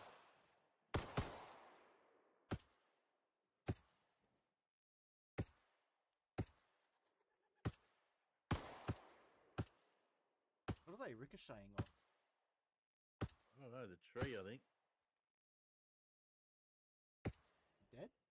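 Rifle shots crack one at a time and echo outdoors.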